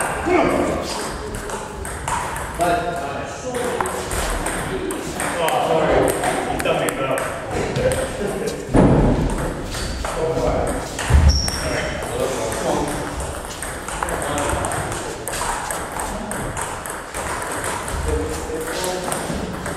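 Several men chat casually nearby in an echoing hall.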